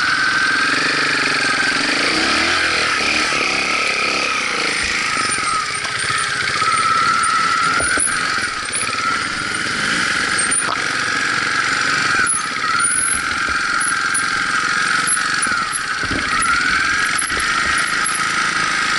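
A motorcycle jolts and rattles over bumpy ground.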